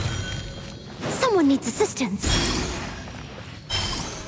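A magical whooshing burst sounds.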